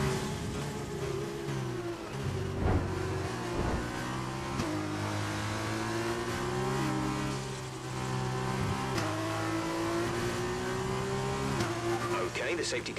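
A racing car engine whines loudly, rising in pitch and dropping with each gear shift.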